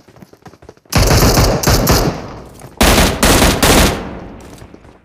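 A rifle fires loud rapid bursts of shots.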